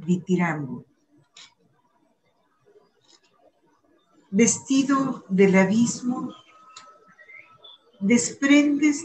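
A woman reads aloud slowly over an online call, with pauses.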